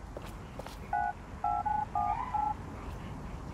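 An electronic keypad beeps several times.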